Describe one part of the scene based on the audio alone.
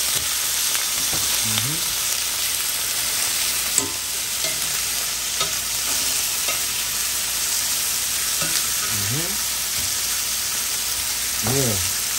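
Metal tongs scrape and clink against a pan.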